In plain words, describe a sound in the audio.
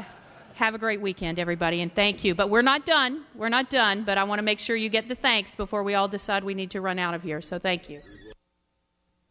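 A middle-aged woman speaks forcefully and with animation into a microphone.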